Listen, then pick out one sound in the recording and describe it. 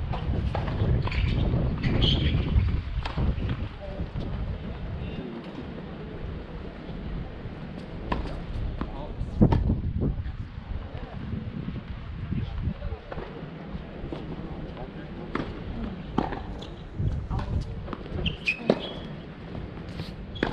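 Sneakers scuff and squeak on a hard court.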